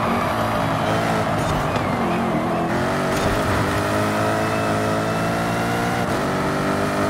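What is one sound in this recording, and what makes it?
A sports car engine roars steadily as the car speeds up.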